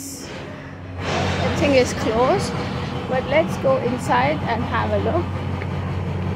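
A woman speaks close to the microphone with animation.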